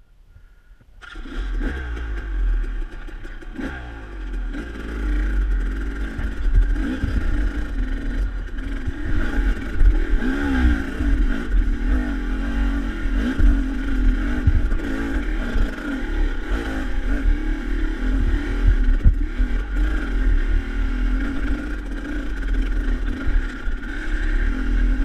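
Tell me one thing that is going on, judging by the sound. Stones crunch and rattle under the tyres.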